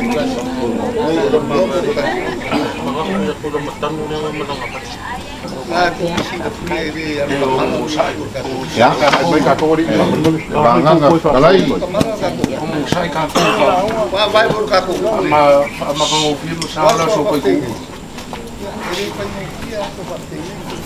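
An elderly man speaks loudly and with ceremony outdoors, close by.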